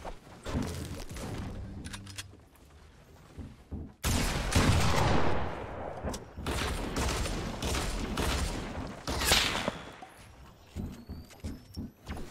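Wooden walls thud and clatter as they are quickly built.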